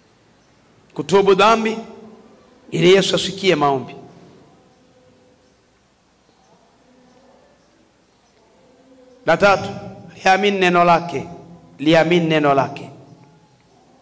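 A middle-aged man speaks with emphasis in short bursts into a microphone, with pauses between phrases.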